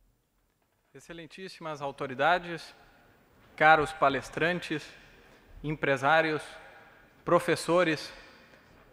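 A young man speaks steadily into a microphone.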